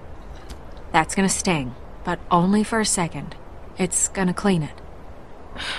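A young woman speaks softly and gently.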